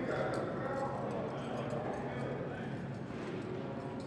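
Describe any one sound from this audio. A man speaks briefly into a handheld radio.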